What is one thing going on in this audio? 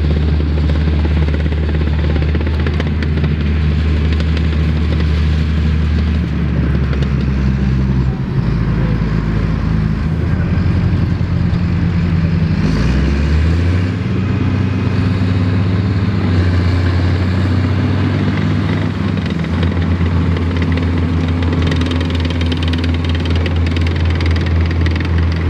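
A tracked vehicle's engine rumbles loudly, rising and falling in pitch as it revs.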